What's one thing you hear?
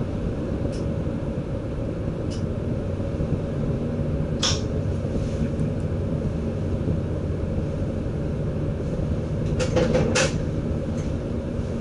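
Train wheels roll and click along the rails.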